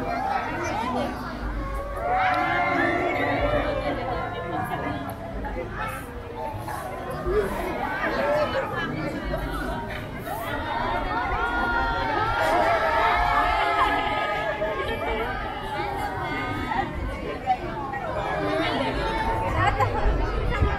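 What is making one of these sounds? A crowd of people chatters and calls out outdoors, close by.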